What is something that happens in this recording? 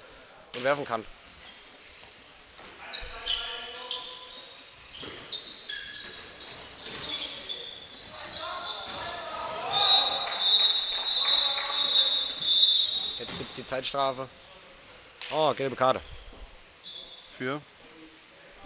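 Sneakers squeak sharply on a hall floor.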